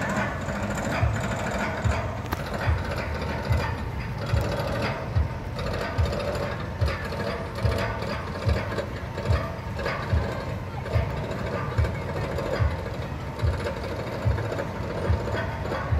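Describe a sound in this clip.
A roller coaster train clanks steadily along its track in the distance.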